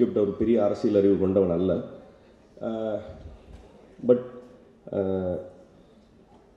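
A young man speaks with emphasis into a microphone, heard through a loudspeaker in a large room.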